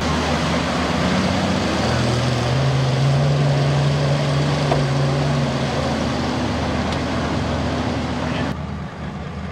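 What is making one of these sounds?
A truck engine roars and revs hard.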